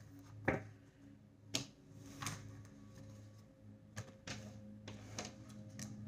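Cards slide and tap softly on a cloth.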